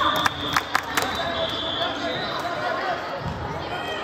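A volleyball thuds as players hit it.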